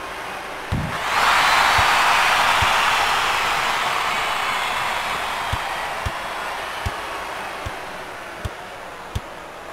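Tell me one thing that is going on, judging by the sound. A large crowd cheers loudly and then slowly dies down.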